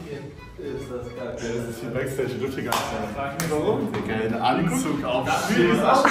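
Young men laugh and chatter close by.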